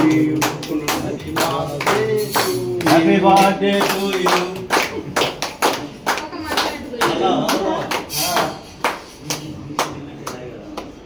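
A crowd of men and women sing together, close by.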